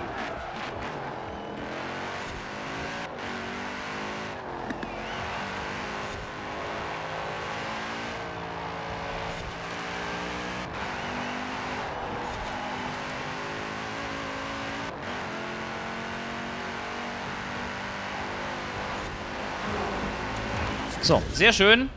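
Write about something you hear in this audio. A car engine roars steadily at high speed, shifting through gears.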